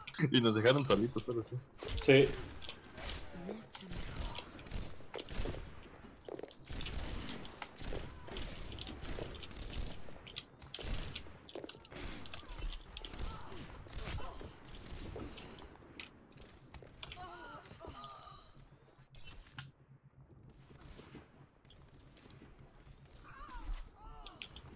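A gun fires in quick bursts.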